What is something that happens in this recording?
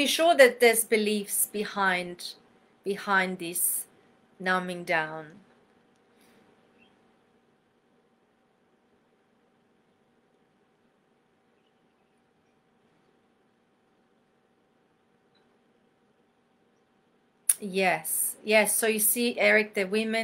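A middle-aged woman talks calmly and close up through a microphone, with pauses.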